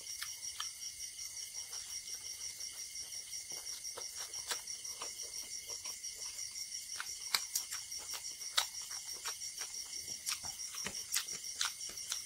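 A man chews food wetly and smacks his lips close to a microphone.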